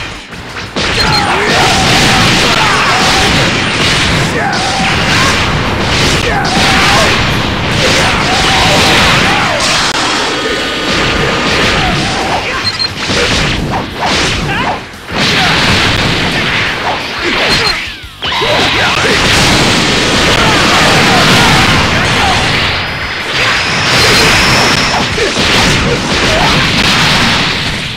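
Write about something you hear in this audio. Energy blasts roar and crackle in a fast fight.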